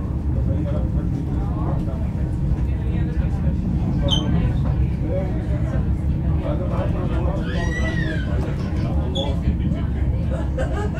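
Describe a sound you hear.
A train rumbles steadily along the rails through an underground station.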